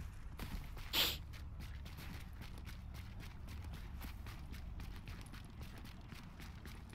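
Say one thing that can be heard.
Footsteps crunch quickly through snow.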